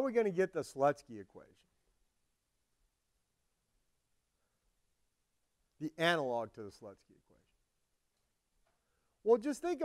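An elderly man lectures calmly through a microphone, with pauses between phrases.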